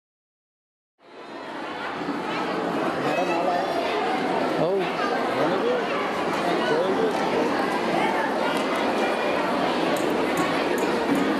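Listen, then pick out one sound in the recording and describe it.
A large crowd of women chatters with many overlapping voices.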